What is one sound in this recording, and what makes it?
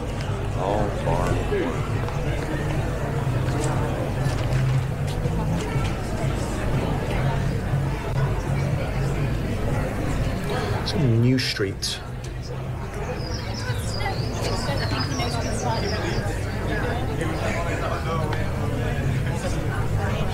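An older man talks calmly through a microphone, as on an online call.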